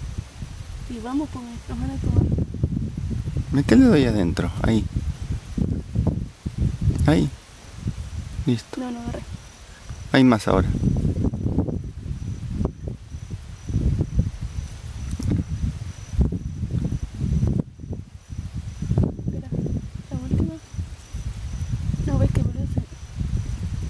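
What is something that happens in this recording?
A young woman talks calmly up close.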